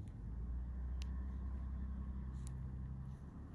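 Metal tweezers click faintly.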